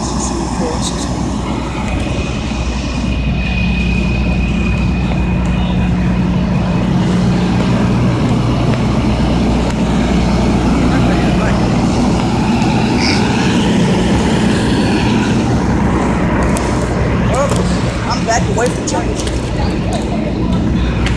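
A fire engine's diesel engine idles close by with a steady low rumble.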